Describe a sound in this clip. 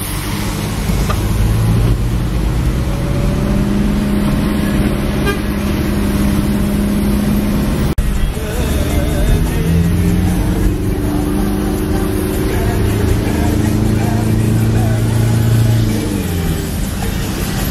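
A vehicle engine hums steadily and rises and falls in pitch.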